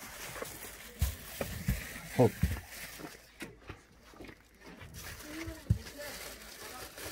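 Plastic bottles crinkle and clatter as they are handled.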